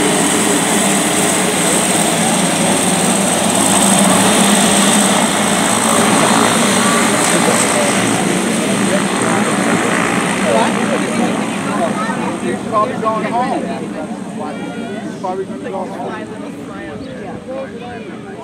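A propeller plane's engine roars loudly nearby as the plane taxis away and slowly fades.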